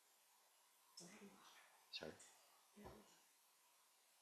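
A woman speaks briefly and faintly into a microphone.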